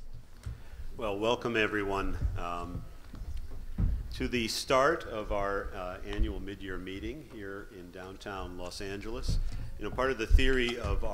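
A man speaks calmly through a microphone in a large room.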